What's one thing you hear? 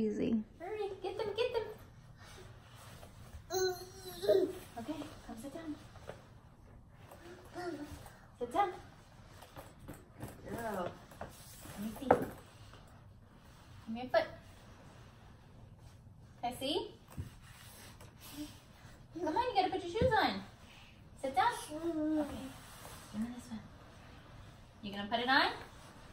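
A young woman talks gently and encouragingly close by.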